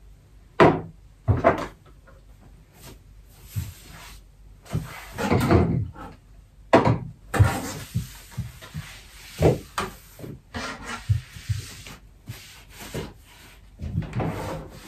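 A cloth wipes and rubs over a hard surface.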